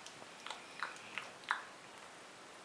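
A bear cub whimpers with short high squeaks.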